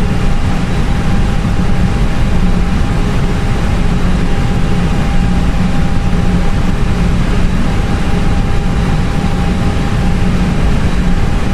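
Jet engines roar steadily with a low, rushing drone.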